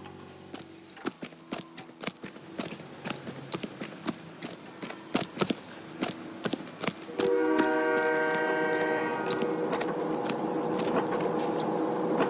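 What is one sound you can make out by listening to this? Footsteps crunch quickly on gravel.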